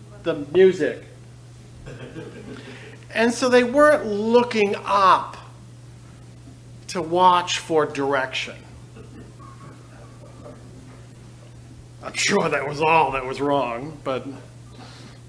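A man speaks with emphasis into a microphone, pausing between phrases.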